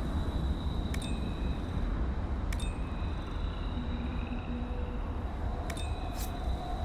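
Short interface clicks chime as items are picked up one by one.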